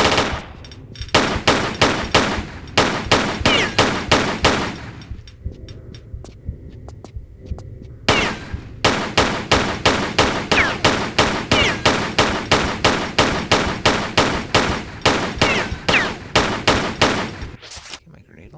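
Two pistols fire rapid shots in quick succession.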